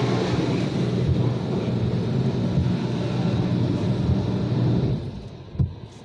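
Water sprays loudly against a car from outside.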